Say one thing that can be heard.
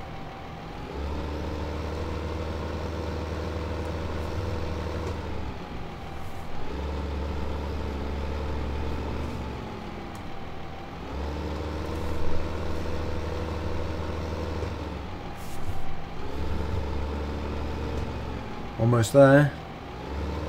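A tractor engine rumbles steadily and rises and falls in pitch as it drives back and forth.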